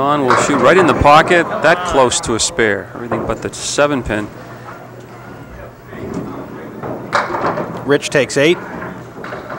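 Bowling pins clatter as a ball knocks them down.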